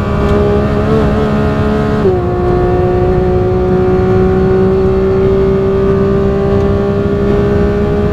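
A race car engine roars loudly at high revs, its pitch climbing slowly.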